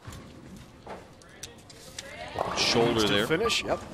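Bowling pins crash and clatter as the ball strikes them.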